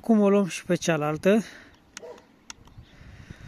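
A small plastic button clicks once.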